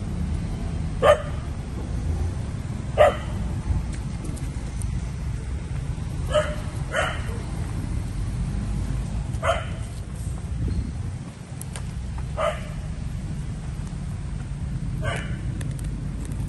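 A baby monkey squeals in short, shrill cries.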